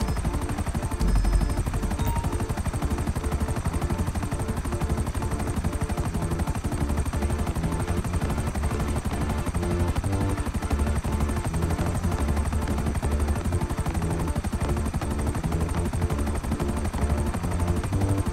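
A helicopter's rotor chops steadily overhead.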